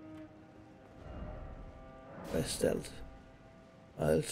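A heavy door creaks open.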